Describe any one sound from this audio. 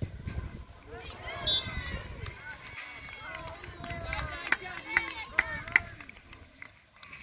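Young women shout and cheer excitedly outdoors.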